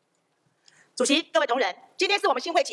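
A second woman speaks into a microphone.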